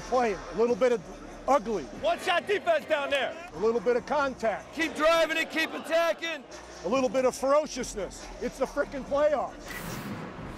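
A middle-aged man speaks urgently and forcefully to players close by.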